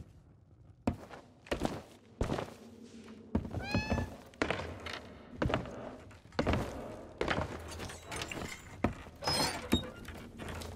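Heavy footsteps thud on wooden boards and stairs.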